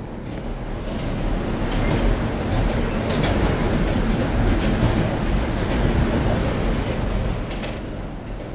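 A subway train rumbles past on the tracks.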